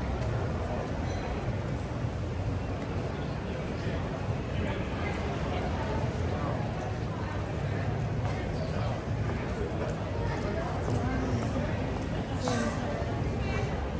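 Footsteps tap on a wet pavement.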